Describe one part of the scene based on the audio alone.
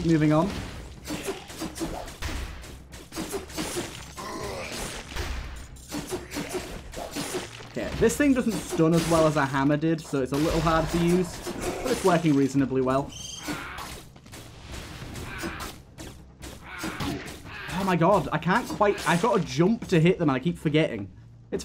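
Blades slash and strike with quick, sharp hits.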